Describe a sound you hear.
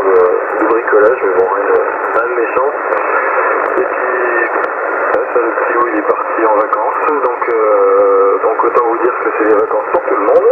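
A man's voice talks over a crackly, tinny radio loudspeaker.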